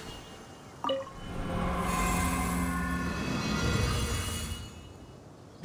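A magical shimmering chime swells and then fades.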